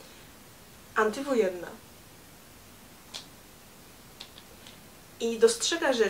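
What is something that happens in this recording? Another young woman talks casually up close.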